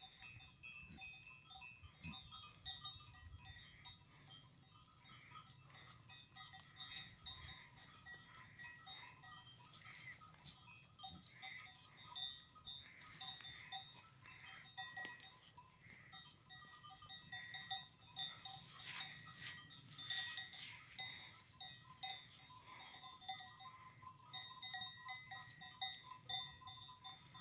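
Goats tear and chew at grass nearby.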